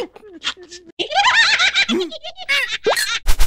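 Cartoon creatures laugh loudly in high voices.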